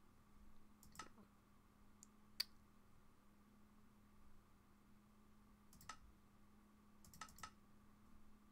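Soft clicks sound a few times.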